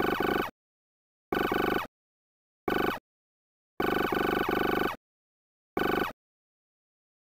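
Computer bleeps chatter in quick bursts as text prints.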